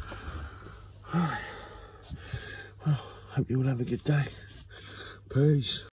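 A middle-aged man speaks close to the microphone with animation.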